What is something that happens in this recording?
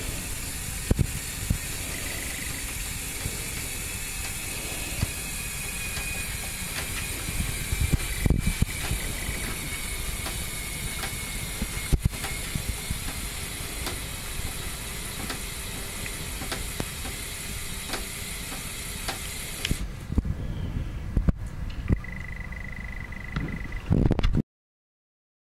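A small toy crane's electric motor whirs steadily as it winds up its line.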